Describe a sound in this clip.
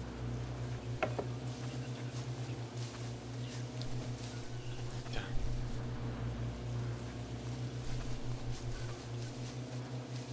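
Branches and bushes scrape against a car.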